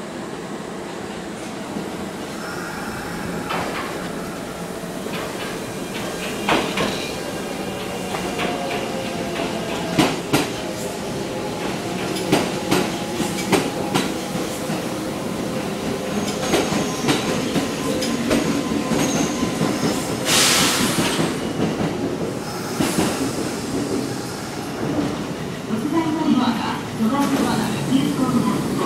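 A train rumbles and rolls along a platform.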